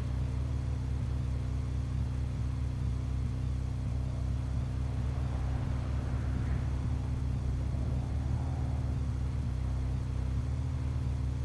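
A motorcycle engine drones steadily.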